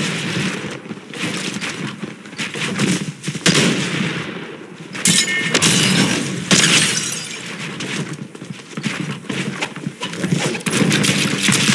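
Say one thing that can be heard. A shotgun fires in sharp blasts.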